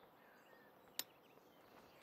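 A golf club strikes a ball with a short, sharp click.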